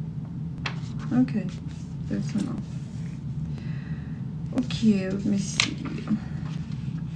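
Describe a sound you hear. A woman speaks briefly and softly, close to the microphone.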